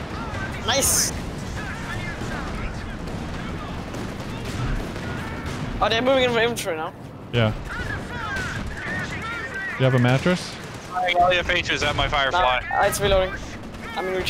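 Explosions boom in the distance.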